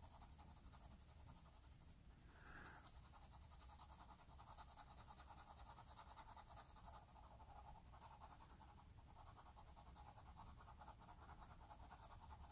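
A pencil scratches steadily across paper in quick, light strokes.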